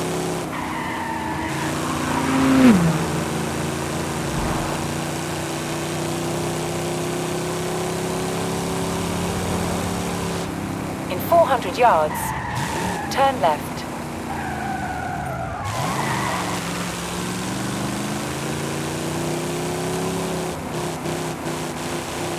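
A powerful car engine roars steadily, revving up and down with gear changes.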